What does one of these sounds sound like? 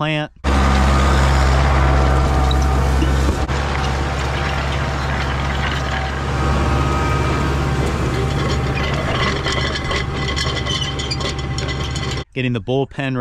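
Soil and stubble rustle and crunch under a disc harrow.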